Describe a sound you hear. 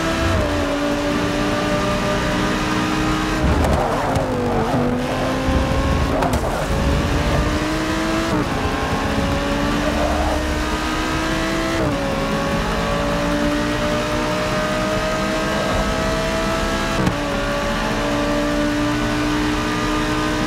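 A racing car engine roars steadily, its pitch climbing as it accelerates and dropping sharply at each gear change.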